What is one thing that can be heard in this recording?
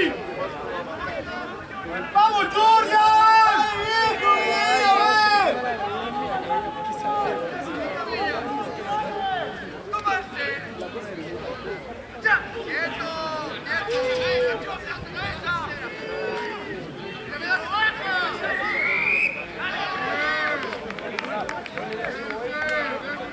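Spectators shout and cheer outdoors.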